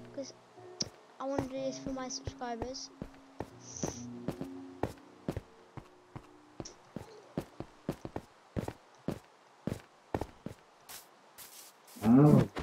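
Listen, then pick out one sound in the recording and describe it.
Footsteps crunch steadily over stone.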